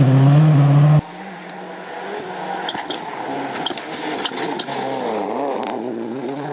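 A rally car engine revs up and down as it approaches and passes.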